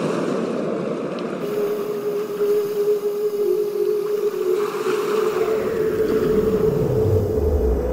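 Shallow water washes gently over sand.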